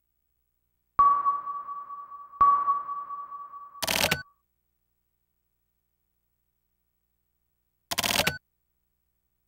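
Short electronic game chimes ring out and fade.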